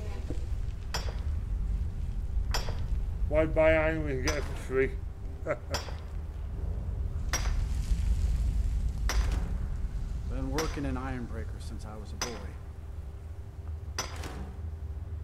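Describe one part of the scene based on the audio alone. A pickaxe strikes rock again and again, ringing briefly with each blow.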